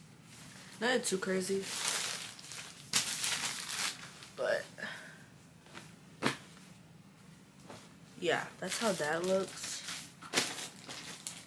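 Denim fabric rustles and flaps as it is handled.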